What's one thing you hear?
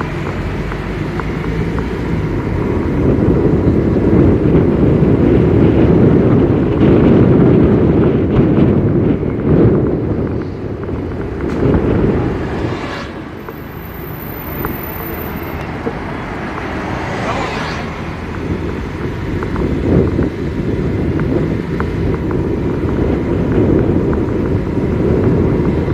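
A vehicle drives along with a steady low road rumble.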